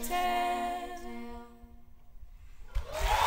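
A group of young women sings a held chord that fades out.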